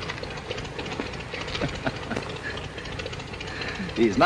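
Two young men laugh together.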